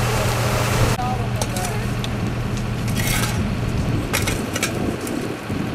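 A rake scrapes over dry ground.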